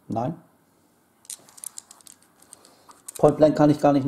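Dice click and rattle against each other in a tray.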